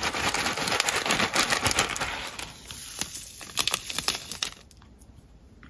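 Tiny plastic beads pour and rattle into a plastic bowl.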